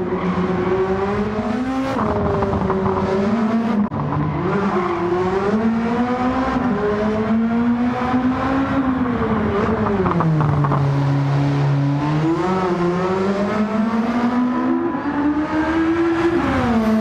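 A race car engine roars and revs up and down through the gears.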